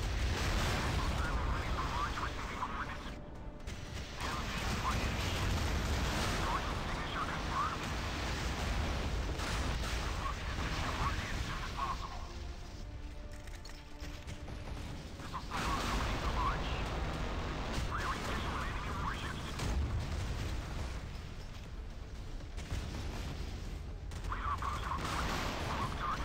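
Explosions boom and rumble in quick succession.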